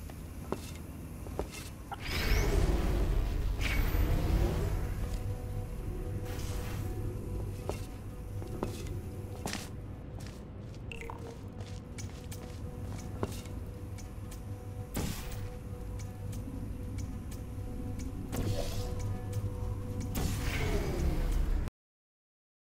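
Sharp mechanical clicks sound now and then.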